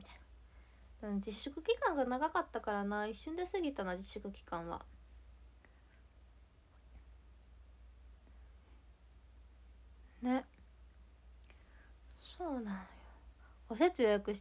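A young woman speaks close to a microphone, softly and expressively, with pauses.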